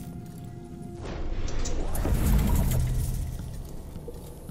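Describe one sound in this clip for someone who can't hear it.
A deep magical whoosh swells up and slowly fades.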